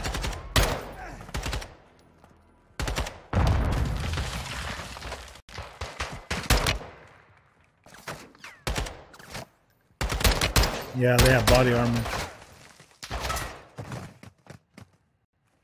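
Loud gunshots bang and echo sharply.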